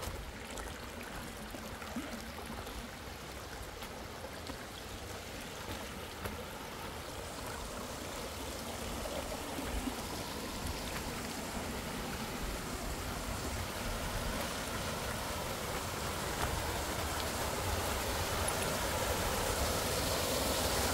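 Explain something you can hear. Footsteps crunch on loose stones.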